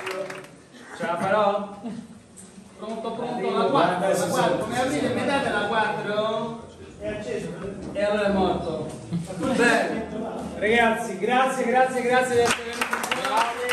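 A man sings into a microphone in an echoing hall.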